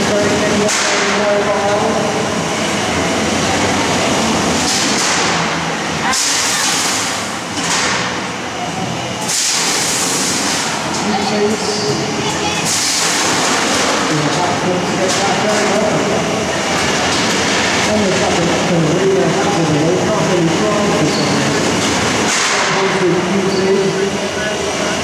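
Electric motors whir as small robots drive across a metal floor.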